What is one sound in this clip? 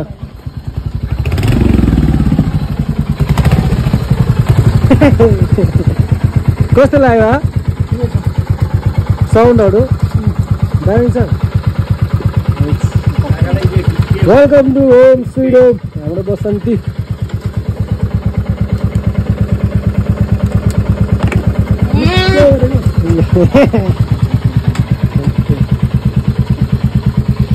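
A motorcycle engine idles with a loud, rapid throbbing.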